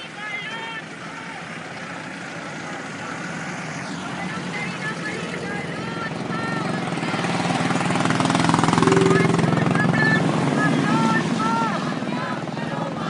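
A vehicle engine hums and rushes past on a road.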